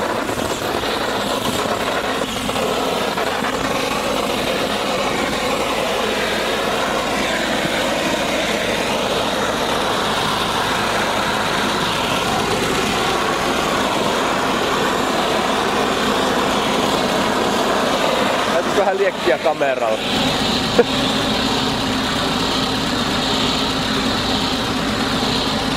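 A heat gun blows air with a steady hiss.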